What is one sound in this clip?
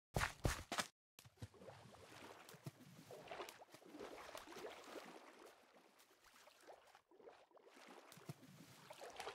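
Water sloshes softly and steadily.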